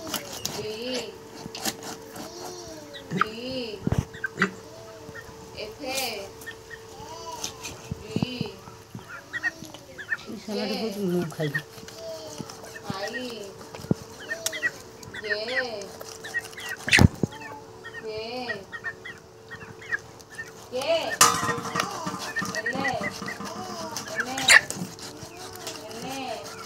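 Hens cluck and call repeatedly close by.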